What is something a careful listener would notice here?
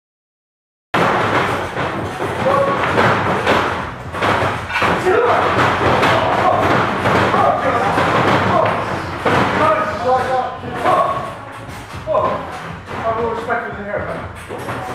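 Bodies thump and feet stomp on a springy wrestling ring.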